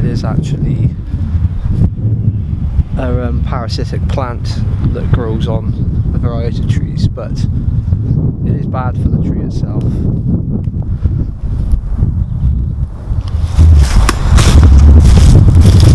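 Wind rumbles and buffets against a microphone.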